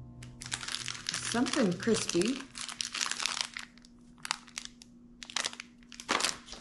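A plastic wrapper crinkles and rustles up close.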